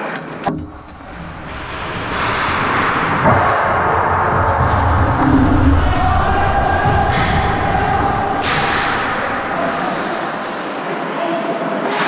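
Hockey sticks clack against the ice.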